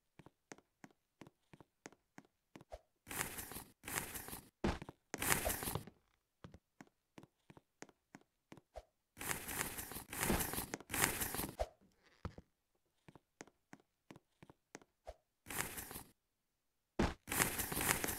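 Quick footsteps patter on a hard surface.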